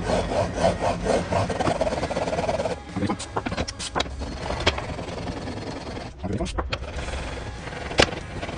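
A blade in a metal guide scrapes rhythmically back and forth across a sharpening stone.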